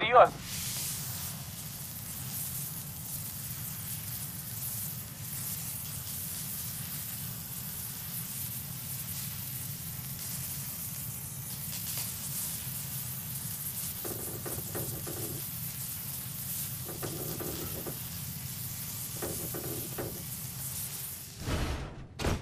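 A welding arc crackles and hisses steadily.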